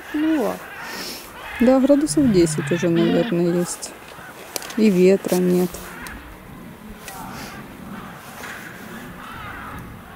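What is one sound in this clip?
A lioness gnaws on a dry stick.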